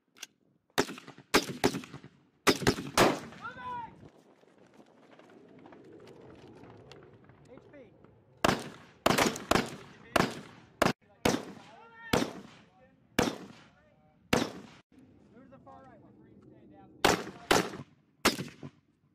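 Rifles fire sharp, echoing shots in bursts outdoors.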